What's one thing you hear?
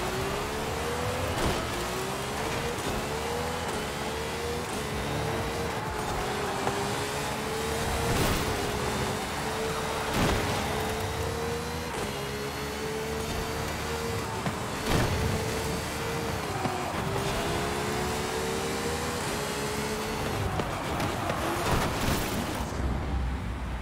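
A racing car engine roars at high revs, rising in pitch through each gear and dropping at each shift.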